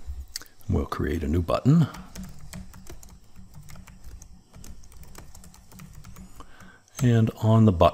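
Keyboard keys click rapidly as someone types.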